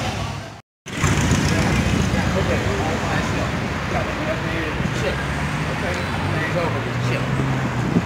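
Cars drive past on the road.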